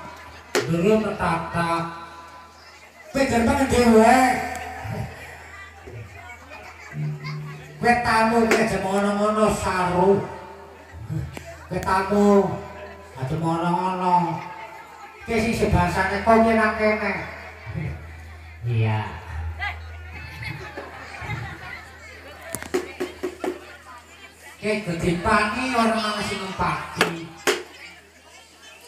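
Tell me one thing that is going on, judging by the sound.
A woman sings through a loudspeaker, with pauses between lines.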